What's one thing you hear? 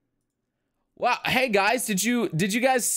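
A young man speaks with animation, close into a microphone.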